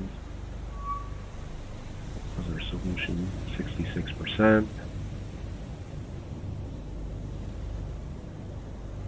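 Waves roll and churn on the open sea.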